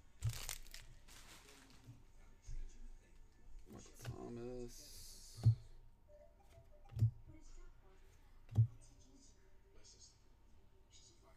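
Trading cards slide and tap as they are shuffled by hand.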